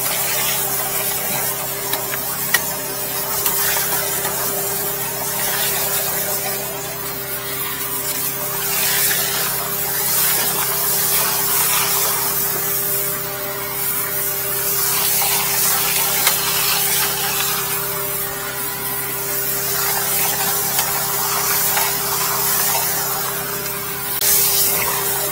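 A pressure washer jet hisses steadily, spraying water into a drain.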